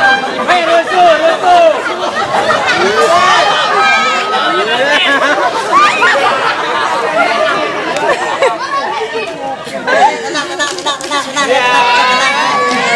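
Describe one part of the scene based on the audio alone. A crowd of young people shouts and cheers close by.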